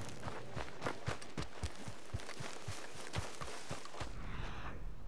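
Quick footsteps run and rustle through tall grass.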